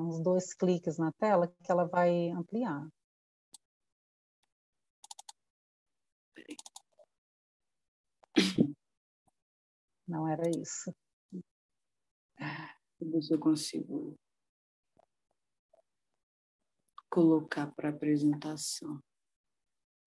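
A woman speaks calmly through an online call, in bursts with pauses.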